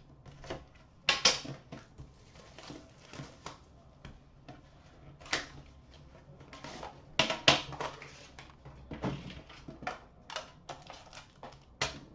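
Cardboard boxes rustle and tap as hands handle them.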